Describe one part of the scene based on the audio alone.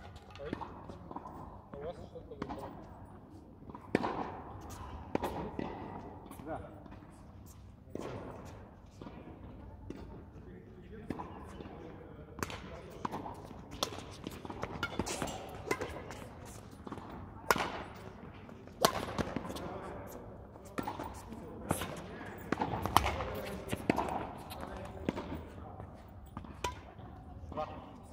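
Rackets hit a shuttlecock back and forth with sharp taps echoing in a large hall.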